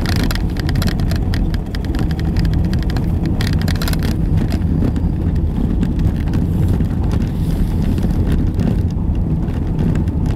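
Tyres rumble and rattle over a brick street.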